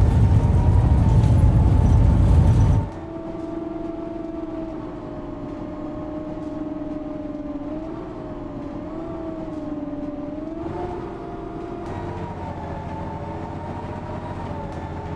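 A bus engine hums steadily, its pitch rising and falling slightly as the bus drives along.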